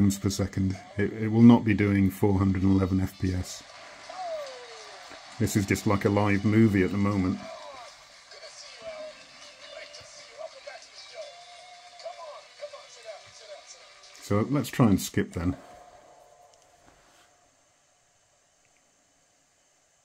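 Buttons on a handheld game console click softly.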